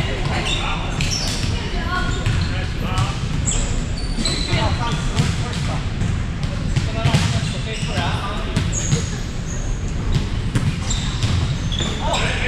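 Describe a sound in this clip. Many people talk and call out in the echoing hall.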